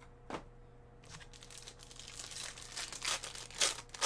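Hands handle a crinkling foil pack.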